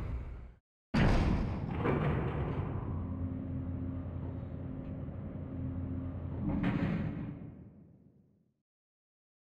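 An elevator hums and rattles as it moves.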